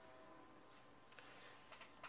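A pencil scratches along a ruler on paper.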